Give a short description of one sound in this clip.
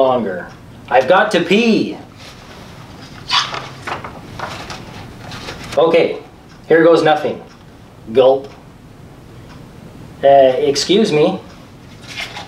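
A man reads aloud with expression, close by.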